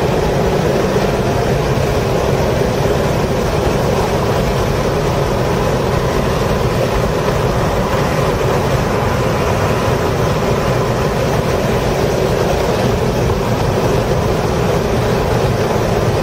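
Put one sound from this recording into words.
Tyres hum and rumble on the track.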